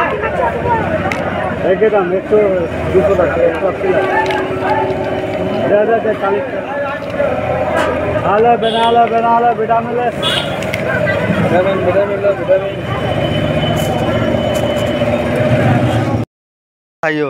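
Several men talk close by.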